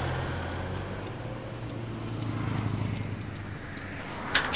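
A motor scooter drives past.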